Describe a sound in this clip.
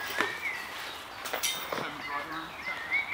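Metal chains jingle as discs are pulled from a basket.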